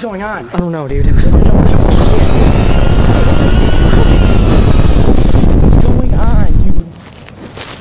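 Wind rushes loudly against a microphone as the recorder is moved fast.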